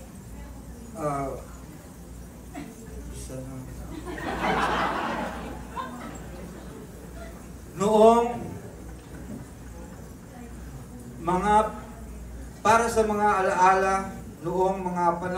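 A man sings into a microphone, heard through loudspeakers in a room.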